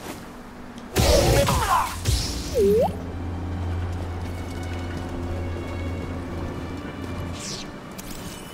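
A lightsaber hums.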